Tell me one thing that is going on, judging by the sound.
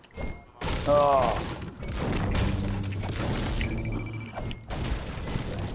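A pickaxe strikes wood with sharp knocks.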